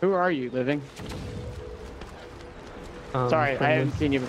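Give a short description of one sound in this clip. Waves slosh and lap against a wooden hull.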